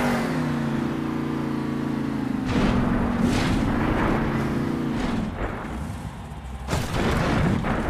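A monster truck crashes and bangs as it lands and rolls over.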